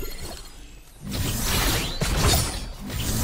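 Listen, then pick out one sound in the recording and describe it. Wind rushes past as a figure glides through the air.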